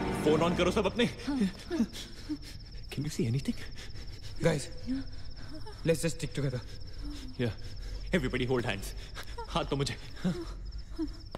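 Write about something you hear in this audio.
A young man speaks in a hushed, tense voice nearby.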